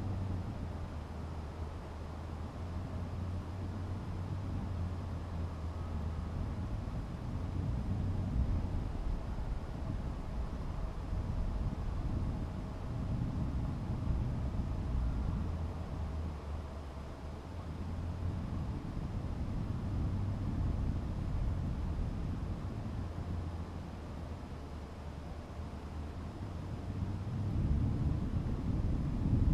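Wind rumbles low and unevenly against the microphone.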